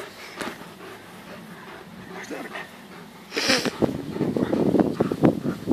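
A dog growls while tugging on a rope toy.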